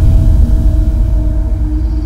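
A car drives along a road.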